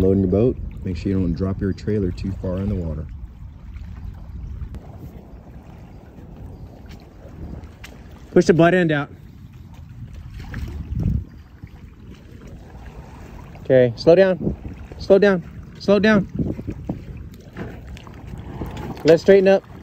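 Water laps and splashes gently.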